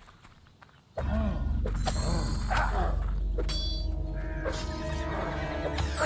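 Blades clash and strike loudly in a fight.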